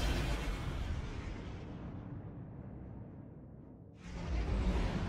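Spaceship engines roar past and fade away.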